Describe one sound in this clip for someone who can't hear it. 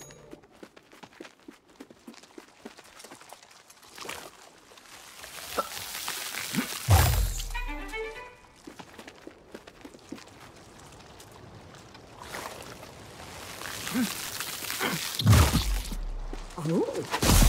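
Light footsteps patter on grass.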